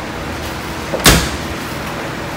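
A dryer door slams shut.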